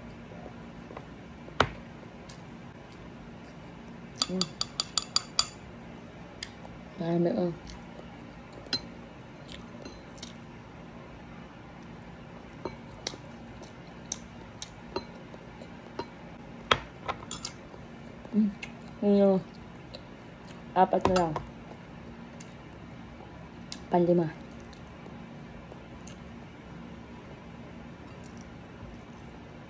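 Metal cutlery clinks and scrapes against a ceramic bowl.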